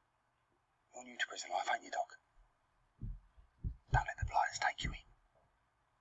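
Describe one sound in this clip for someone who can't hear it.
A man speaks in a low, tense voice nearby.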